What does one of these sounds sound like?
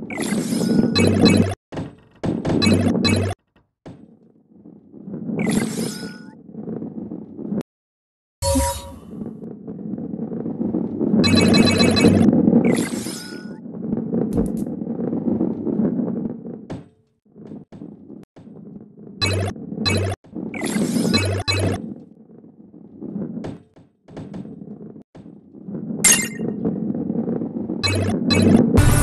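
Bright chimes ring out as coins are collected in a game.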